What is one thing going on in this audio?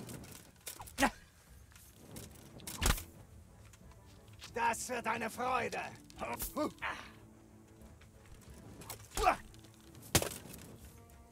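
Swords clash with sharp metallic strikes.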